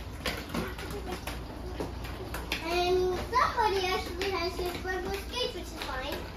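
Roller skate wheels roll over a hard floor.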